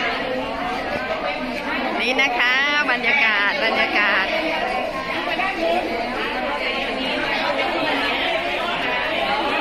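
A crowd of women chatter all around in a busy indoor room.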